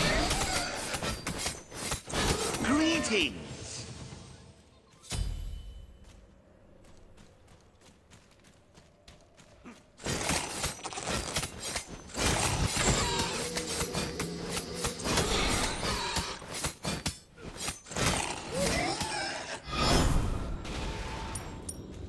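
Magic blasts whoosh and crackle in a video game.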